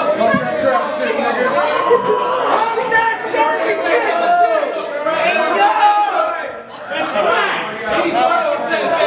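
A crowd of men and women talk loudly and at once close by.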